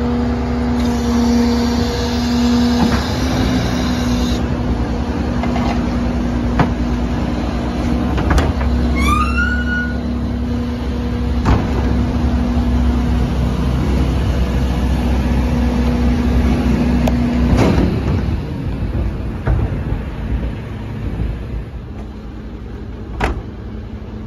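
A garbage truck engine hums loudly and steadily.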